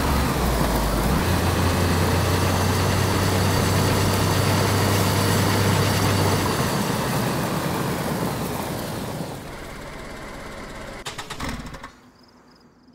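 A car engine runs loudly as the car drives over rough ground, then winds down.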